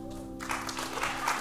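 A band's final chord rings out and stops.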